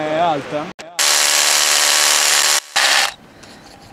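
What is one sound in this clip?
A power drill hammers loudly into rock.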